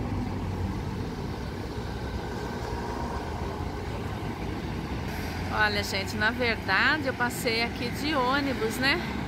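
City traffic rumbles steadily in the open air.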